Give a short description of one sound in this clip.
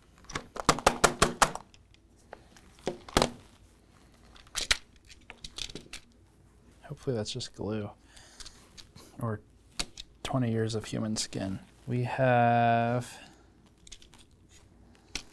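Plastic controller parts click and clatter as they are handled.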